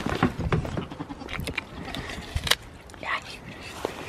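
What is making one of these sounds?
A goat chews an apple noisily.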